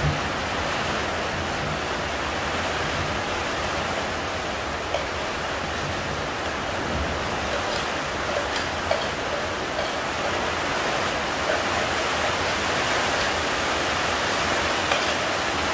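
Liquid pours and splashes into a bowl.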